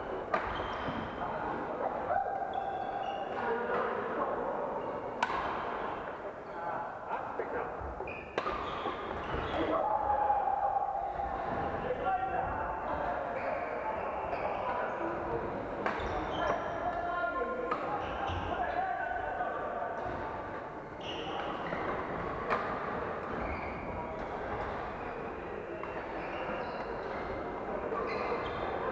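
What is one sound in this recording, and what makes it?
Shoes squeak on a wooden floor.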